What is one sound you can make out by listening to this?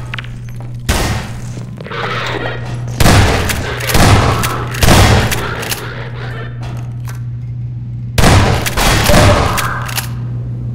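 Shotgun blasts boom loudly, one after another.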